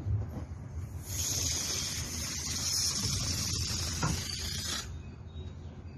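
Air hisses out of a balloon.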